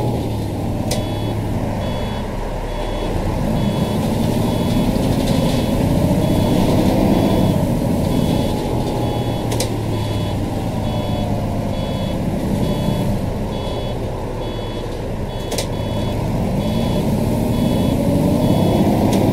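A turn signal ticks in an even rhythm.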